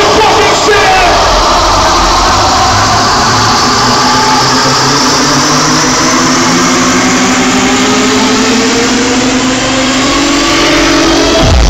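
Loud electronic dance music booms and distorts through large speakers.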